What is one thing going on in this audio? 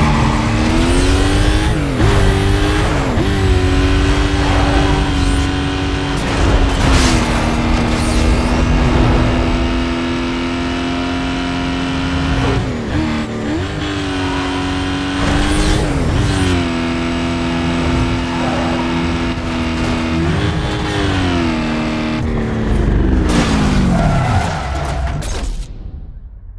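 A car engine roars at high revs, dropping in pitch with each gear change.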